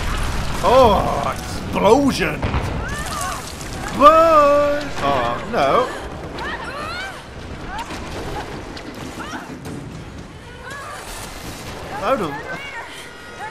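A young woman screams in fright.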